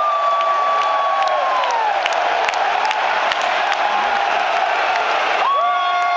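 Fans shout and whoop close by.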